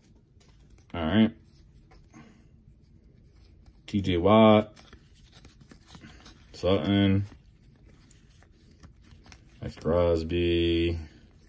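Trading cards slide against each other and rustle softly.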